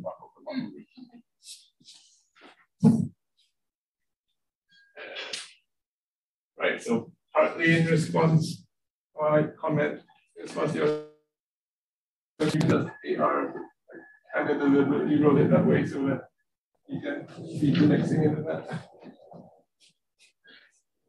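A young man lectures calmly in bursts, heard through a microphone.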